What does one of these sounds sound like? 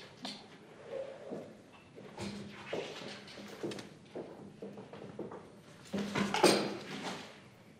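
Footsteps tap across a hard floor in a large room.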